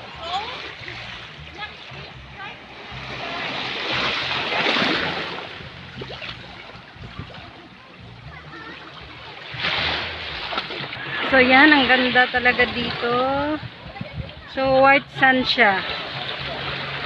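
Small waves lap gently on a shore.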